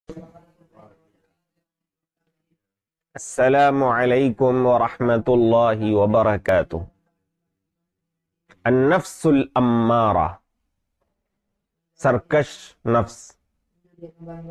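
A man speaks calmly and closely into a microphone, with pauses between phrases.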